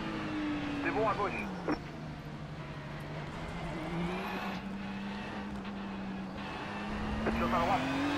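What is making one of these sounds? Tyres screech as a racing car brakes into a corner.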